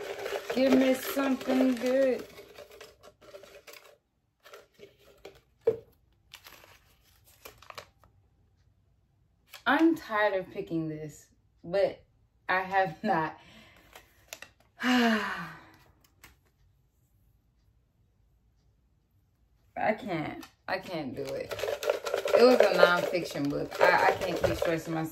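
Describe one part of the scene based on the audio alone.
A plastic package crinkles as it is handled.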